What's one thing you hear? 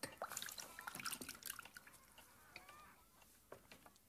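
Liquid pours into a cup.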